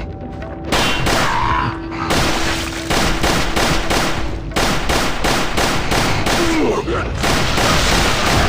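A handgun fires shot after shot in quick succession.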